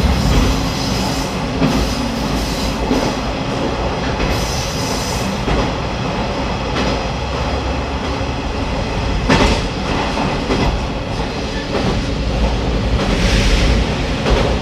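A train rumbles steadily along the rails through an echoing tunnel.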